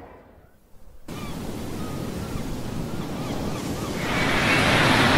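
Waves wash onto a shore.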